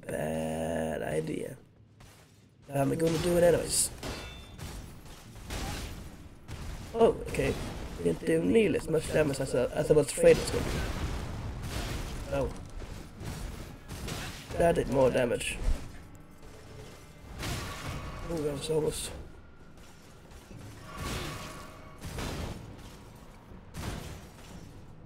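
Metal weapons clash and strike armor in sharp, repeated blows.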